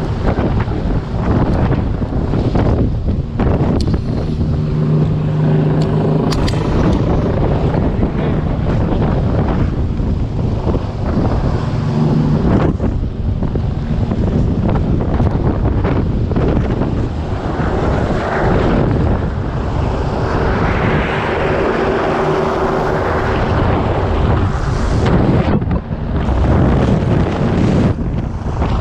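A helicopter roars and thumps loudly close overhead.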